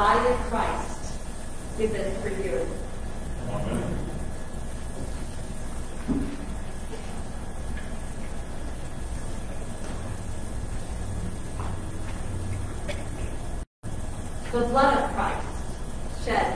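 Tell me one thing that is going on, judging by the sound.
A man speaks calmly and slowly into a microphone in an echoing hall.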